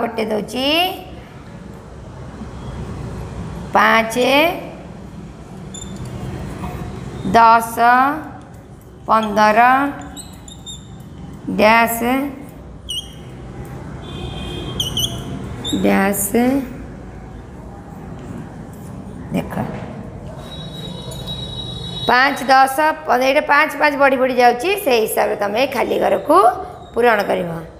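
A woman speaks clearly and slowly into a close microphone, in short phrases with pauses.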